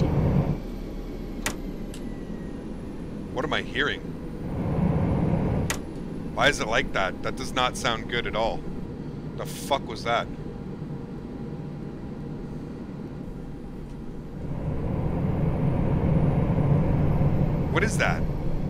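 A jet engine hums low and steady.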